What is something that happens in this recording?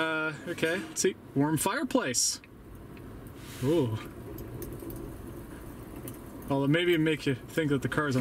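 A crackling fire plays softly through car speakers.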